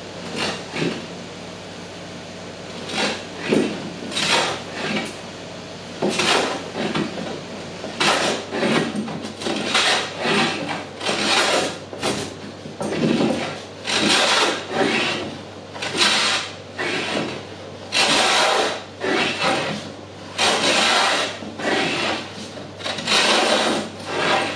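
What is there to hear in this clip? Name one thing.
A hand plane shaves wood in repeated long strokes.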